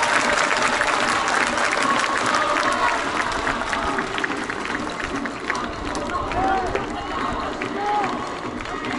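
Fans clap their hands close by.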